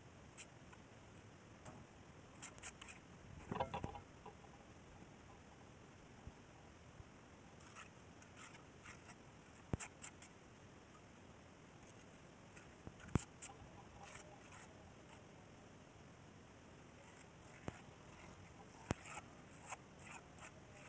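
A trowel scrapes over wet cement.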